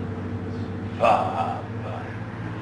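A man speaks briefly and calmly nearby.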